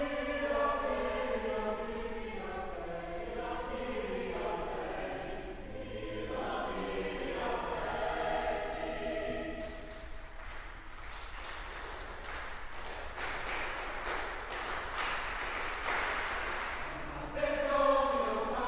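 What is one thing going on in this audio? A large choir sings in a reverberant hall.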